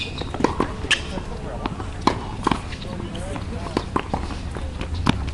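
Tennis balls are struck with rackets, in sharp pops.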